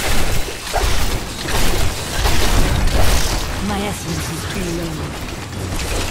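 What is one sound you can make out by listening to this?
A giant spider monster shrieks.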